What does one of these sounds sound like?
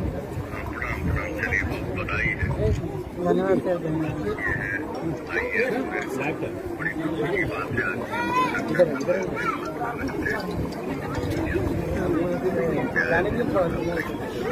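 A crowd of men and women talks over one another close by.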